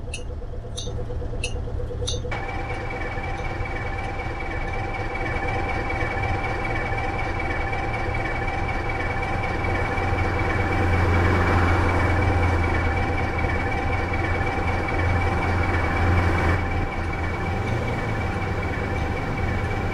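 A bus engine hums and rumbles steadily.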